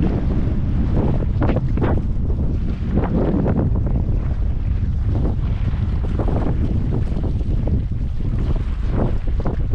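Strong wind rushes and buffets loudly against the microphone.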